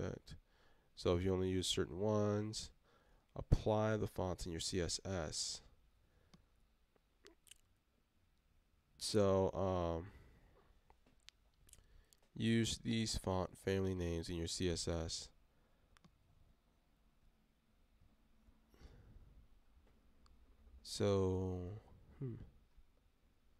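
A young man talks calmly into a nearby microphone, in short bursts.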